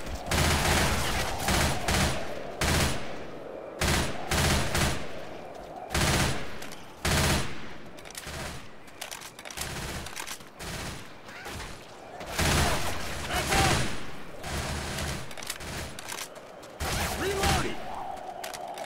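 Rapid bursts of automatic gunfire ring out, loud and close.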